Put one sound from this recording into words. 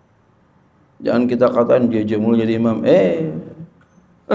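A man speaks with animation into a microphone.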